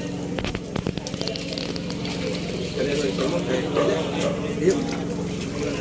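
A plastic bag rustles and crinkles as fish are handled.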